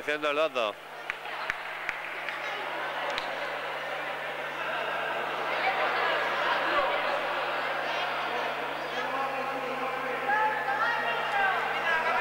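A crowd of spectators murmurs and chatters.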